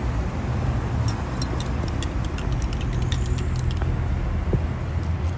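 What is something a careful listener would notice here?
Liquid pours over ice cubes.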